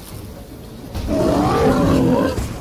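A large creature growls and roars loudly.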